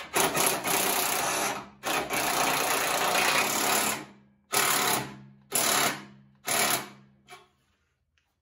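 A power tool whirs loudly in several bursts, then falls quiet.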